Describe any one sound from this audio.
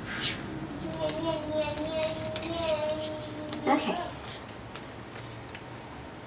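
Plastic sheets rustle and crinkle as a hand flips a page.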